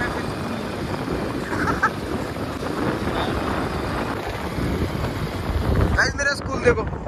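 A motorcycle engine hums as it rides along a road.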